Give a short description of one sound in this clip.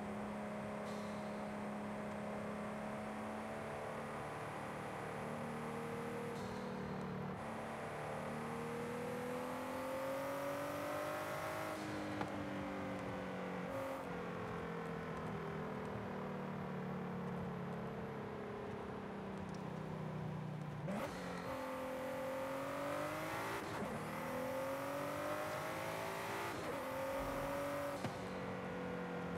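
A sports car engine roars steadily, rising and falling in pitch as the car shifts gears.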